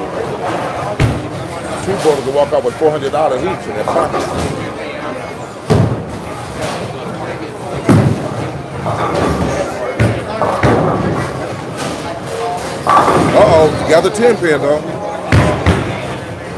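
Bowling balls rumble down lanes and crash into pins.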